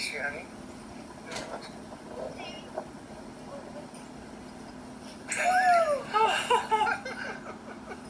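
A woman laughs and squeals with excitement close by.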